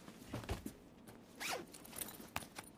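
A zipper on a bag is pulled open.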